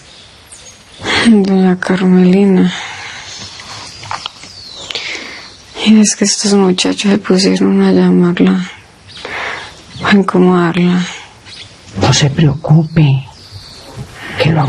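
A young woman speaks weakly and faintly, in short phrases.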